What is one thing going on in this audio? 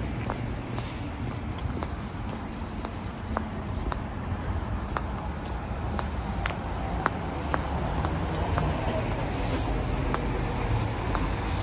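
Wind rumbles steadily past a moving bicycle.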